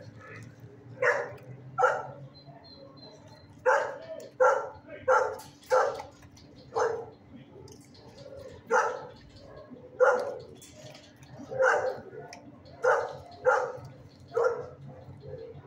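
A dog barks close by in short bursts.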